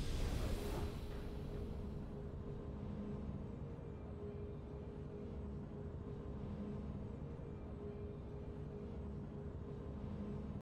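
A soft triumphant tune plays quietly.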